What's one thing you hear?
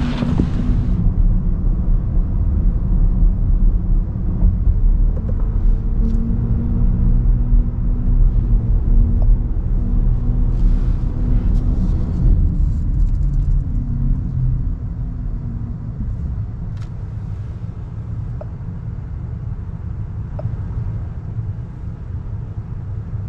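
Tyres rumble steadily on the road, heard from inside a quiet car.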